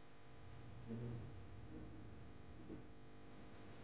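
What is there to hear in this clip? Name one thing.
A woman sobs softly nearby.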